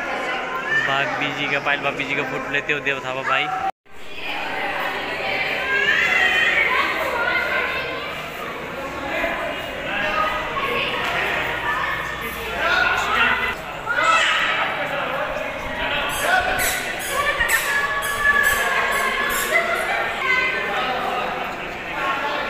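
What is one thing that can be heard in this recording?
Men and women chatter and call out nearby, echoing in a large stone hall.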